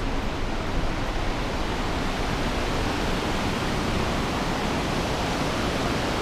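A river rushes through a rocky gorge.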